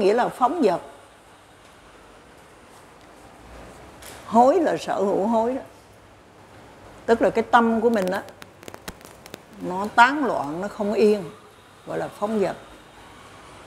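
An elderly woman speaks calmly into a microphone, in bursts with pauses.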